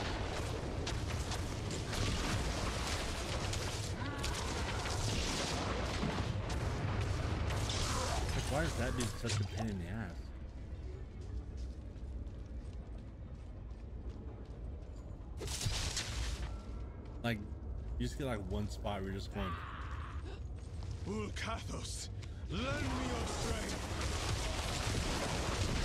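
Spells and blows clash loudly in a fantasy video game battle.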